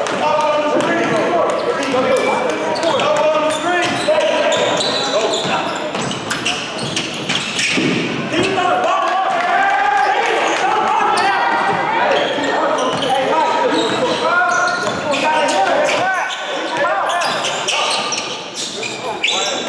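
Young men shout to each other in a large echoing gym.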